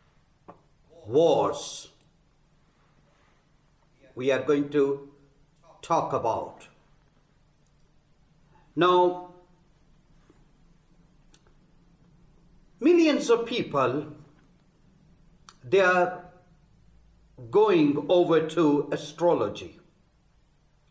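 A man speaks calmly and slowly in short phrases, close to a microphone.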